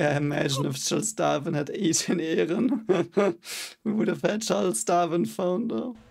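A young man laughs softly close by.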